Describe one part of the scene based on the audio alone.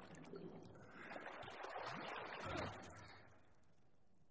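Liquid splashes loudly.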